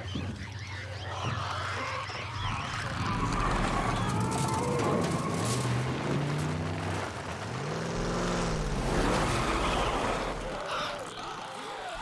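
A truck engine revs and roars as it drives.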